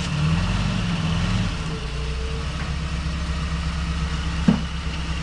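A vehicle's engine idles and rumbles steadily nearby as it turns.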